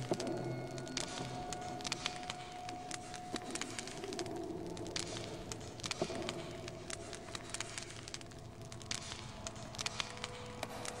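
A subway train rumbles steadily.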